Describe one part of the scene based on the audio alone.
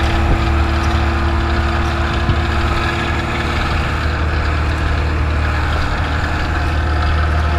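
Tyres roll over a snowy road.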